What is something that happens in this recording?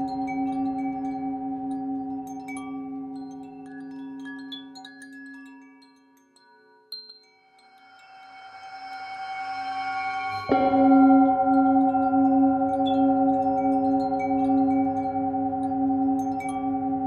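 A metal singing bowl rings with a long, humming tone that swells and fades.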